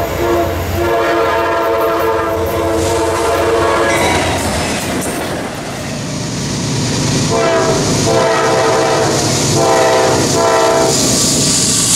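A train horn blows loud, long blasts close by.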